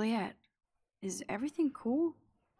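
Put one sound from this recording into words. A young woman speaks calmly, asking a question up close.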